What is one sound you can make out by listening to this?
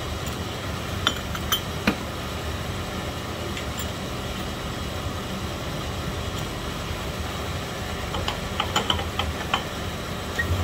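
A metal piston clinks against a honing machine.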